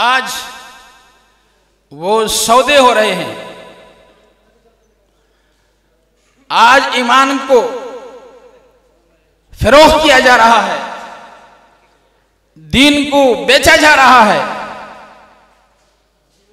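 An elderly man speaks with passion into a microphone over loudspeakers, in bursts with long echoing pauses.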